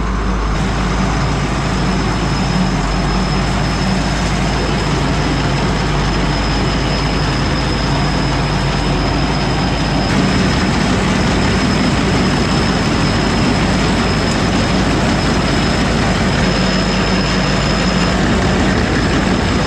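Grain pours and hisses steadily into a metal trough.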